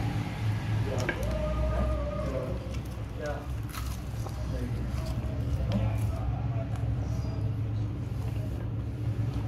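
A man bites into crispy fried chicken wings close to the microphone.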